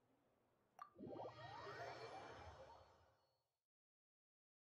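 A shimmering chime swells and fades away.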